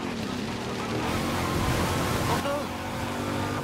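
Tyres splash through muddy water.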